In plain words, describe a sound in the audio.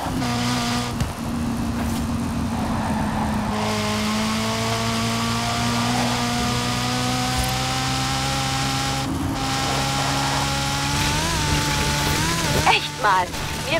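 A race car engine roars at high speed, its pitch rising slowly as it accelerates.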